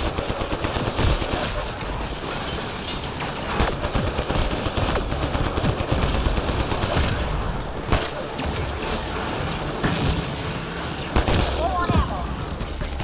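Energy blasts crackle and burst.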